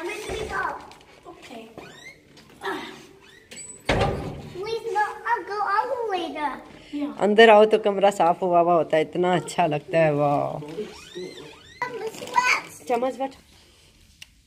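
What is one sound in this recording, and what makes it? A young girl talks and sings excitedly close by.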